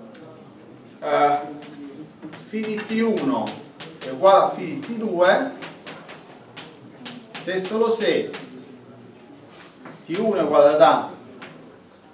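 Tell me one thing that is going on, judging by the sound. An older man lectures calmly in an echoing room.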